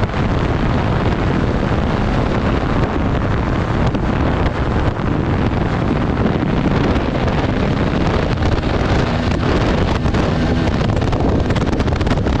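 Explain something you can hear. A dirt bike engine roars steadily close by.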